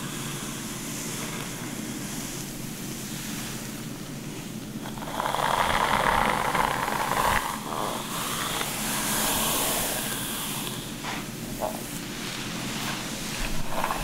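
Fingers rustle softly through hair close up.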